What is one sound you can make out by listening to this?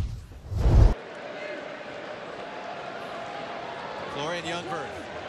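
A stadium crowd murmurs steadily, outdoors.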